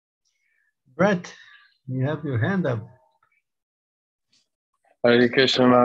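An elderly man speaks calmly through an online call, in short bursts with pauses.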